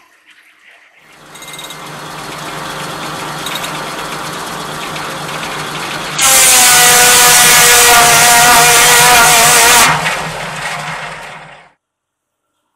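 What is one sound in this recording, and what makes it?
A large circular saw spins with a steady whirring hum.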